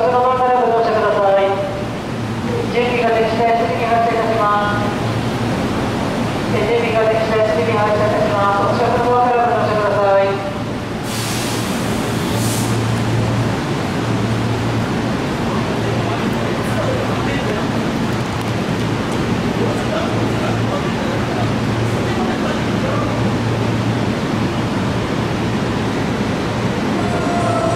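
A standing electric train hums steadily close by.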